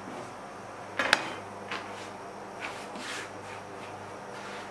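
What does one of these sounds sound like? Hands toss noodles on a wooden board with soft thuds.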